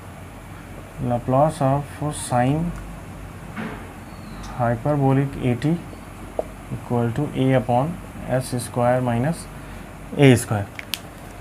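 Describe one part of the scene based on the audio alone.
A man speaks calmly nearby, explaining in short phrases.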